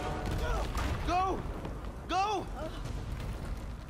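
A woman shouts in alarm.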